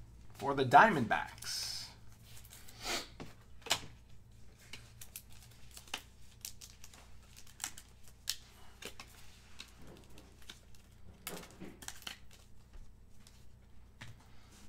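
Trading cards rustle and tap softly as they are handled.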